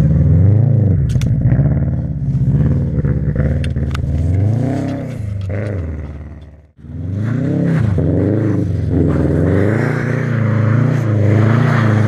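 A rally car engine roars and revs up and down.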